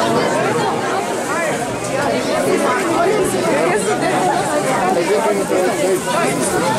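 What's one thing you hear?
A crowd of men and women talk and chant together nearby.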